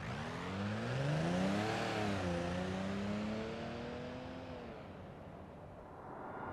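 An engine hums as a car drives past and away.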